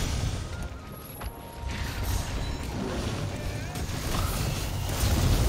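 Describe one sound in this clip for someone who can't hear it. A huge beast growls and rumbles.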